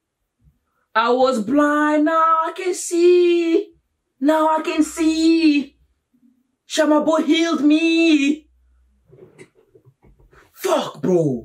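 A young man speaks loudly and with animation close to a microphone.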